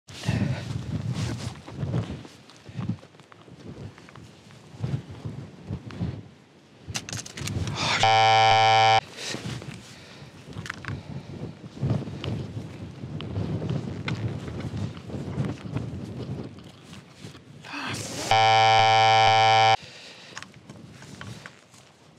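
A man talks calmly close by, outdoors.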